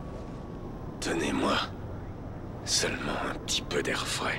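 A man answers in a rough, weary voice, up close.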